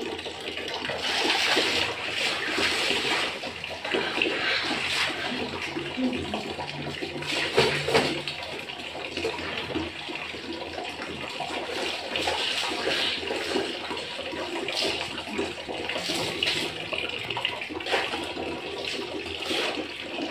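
Wet cloth splashes and sloshes in a bucket of water.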